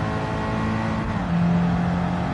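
A racing car engine shifts up a gear with a brief drop in pitch.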